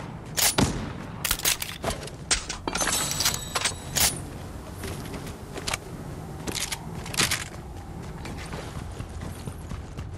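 Quick footsteps patter on hard pavement.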